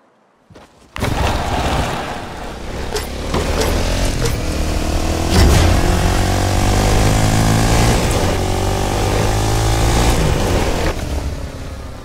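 A small engine hums and revs steadily.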